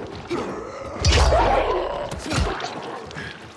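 A blade slashes into flesh with a wet thud.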